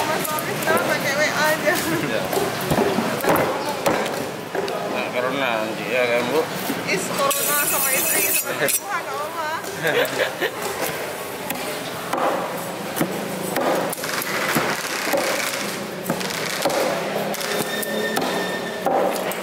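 A knife chops through fish on a wooden block with dull thuds.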